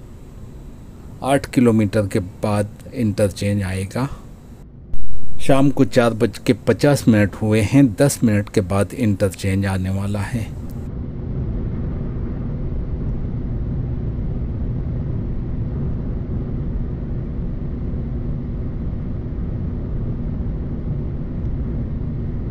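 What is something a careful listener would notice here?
Tyres hum and rumble steadily as a car drives along a highway.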